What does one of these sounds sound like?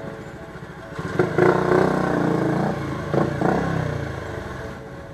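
Motorcycle engines rev nearby.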